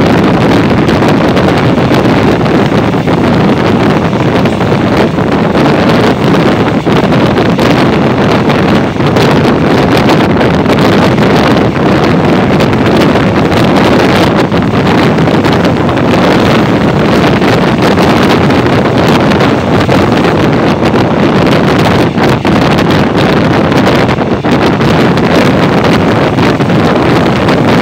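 Wind rushes loudly past an open train window.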